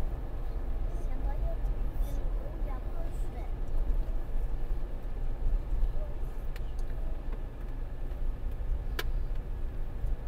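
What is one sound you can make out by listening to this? Tyres roll steadily over asphalt.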